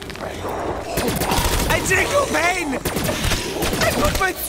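Zombies growl and snarl close by.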